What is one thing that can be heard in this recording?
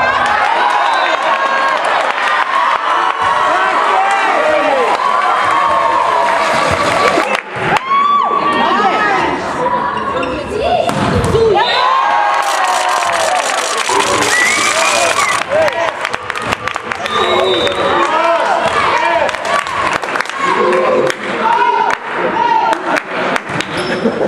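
A volleyball is struck with a hand and smacks.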